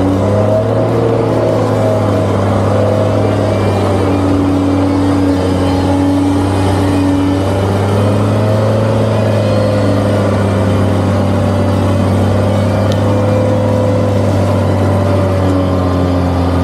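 A vehicle engine rumbles as it crawls forward.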